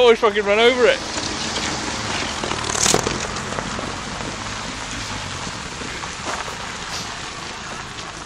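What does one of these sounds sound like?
Tyres crunch and scrape over loose gravel.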